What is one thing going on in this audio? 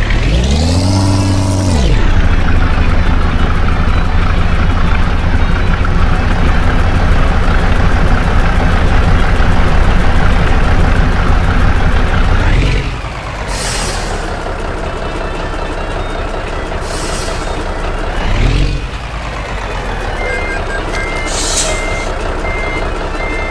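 A heavy bus engine rumbles steadily.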